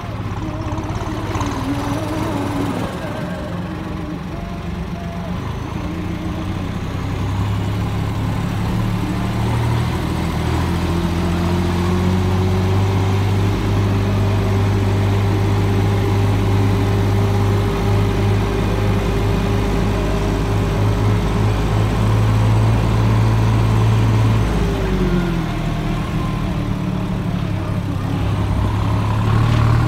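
Tyres crunch over a rough gravel track.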